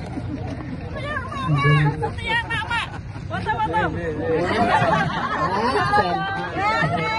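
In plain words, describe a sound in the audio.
Several women chatter excitedly close by, outdoors.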